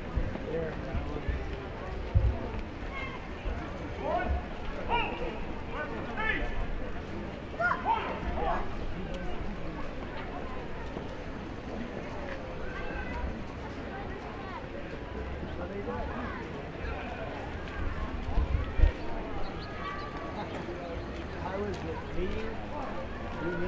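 A crowd murmurs and chatters outdoors nearby.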